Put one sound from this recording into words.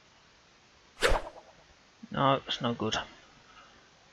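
A golf ball is struck with a short sharp whack.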